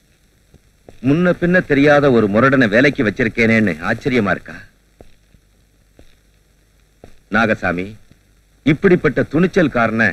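A man's voice answers sharply in an echoing room.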